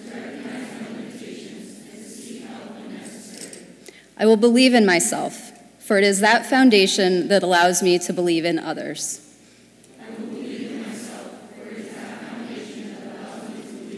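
A large crowd murmurs and chatters in a large hall.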